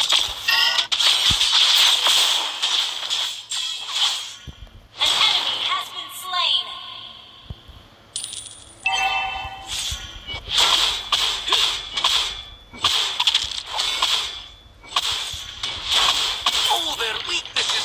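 Hits thud and clang during a fight.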